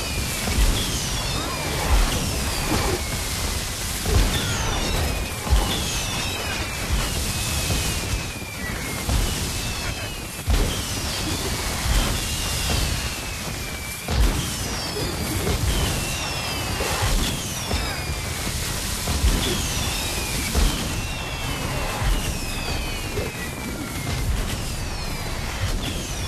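Magic blasts thump and boom over and over.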